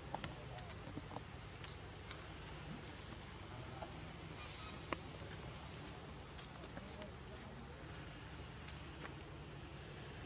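Leaves rustle as monkeys move through the undergrowth.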